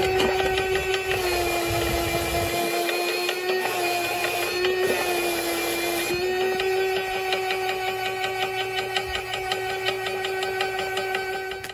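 A motor hums steadily as a brush roller spins.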